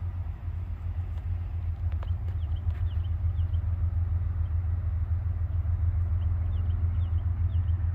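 A distant train rumbles low as it slowly approaches.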